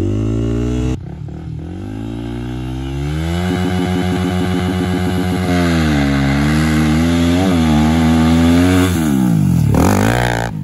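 A dirt bike engine approaches from a distance, growing louder, and roars past.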